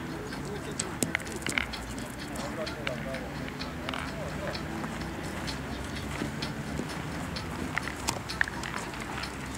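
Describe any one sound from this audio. Metal boules clack against each other.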